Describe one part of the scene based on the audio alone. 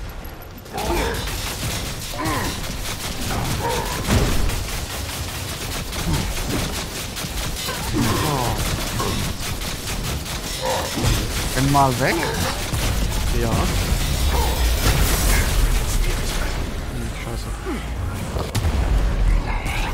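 Gunshots and combat sounds crash and boom.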